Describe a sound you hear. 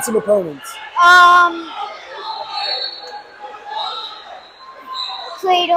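A young boy speaks close to a microphone.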